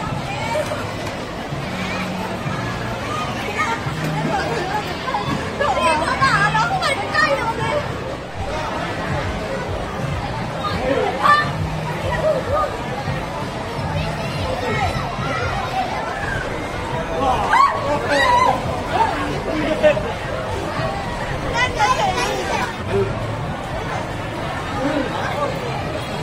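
A busy crowd chatters outdoors.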